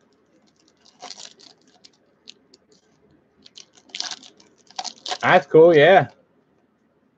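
A foil wrapper crinkles and tears.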